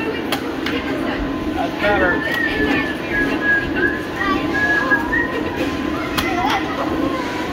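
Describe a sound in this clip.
A crowd of children and adults chatters indoors.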